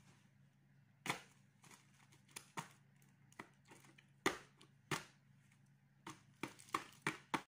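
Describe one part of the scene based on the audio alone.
A plastic bottle crackles and clicks in a child's hands.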